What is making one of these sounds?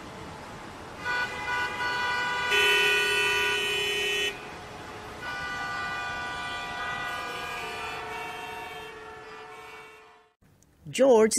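Car horns honk and blare in a traffic jam.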